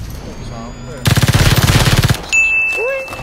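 Rapid automatic gunfire rattles in a video game.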